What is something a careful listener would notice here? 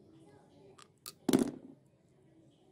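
A metal part knocks sharply on a hard floor.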